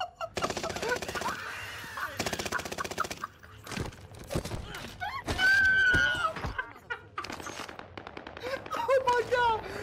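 A young man shouts with excitement into a headset microphone.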